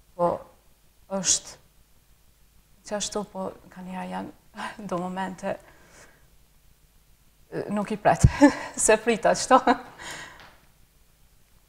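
A young woman talks calmly and with animation, close to a microphone.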